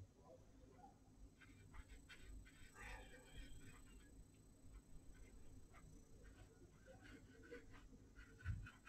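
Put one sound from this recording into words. A paintbrush dabs and scratches softly on paper.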